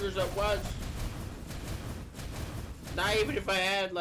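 Video game combat sound effects clash and whoosh.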